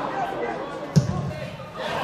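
A football is struck hard with a boot outdoors.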